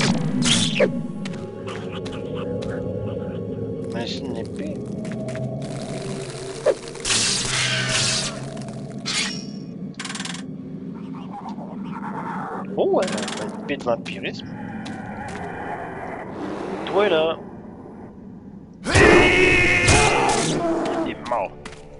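A magic spell crackles and bursts in a computer game.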